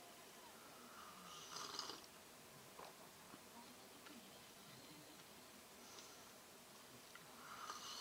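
A young woman sips a hot drink.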